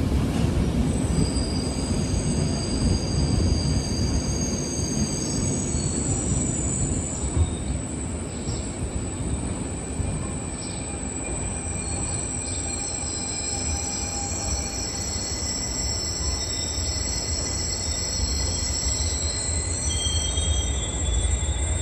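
A train rumbles steadily as it rolls slowly along the tracks.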